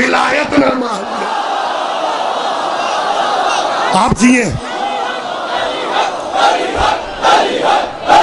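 A large crowd outdoors chants and shouts together.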